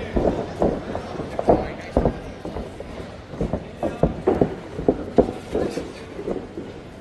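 Boxing gloves thump in quick bursts in a large echoing hall.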